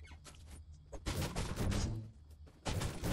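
A pickaxe strikes a wall with sharp thuds.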